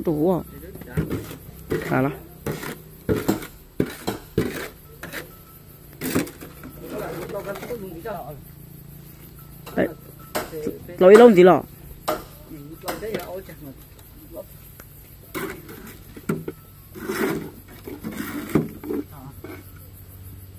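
A shovel scrapes and knocks in wet mortar.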